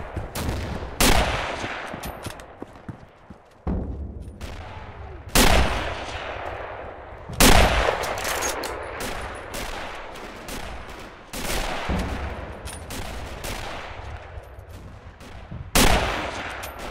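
A rifle fires loud shots that echo outdoors.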